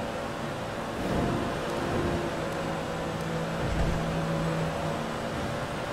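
Another car passes by in an echoing tunnel.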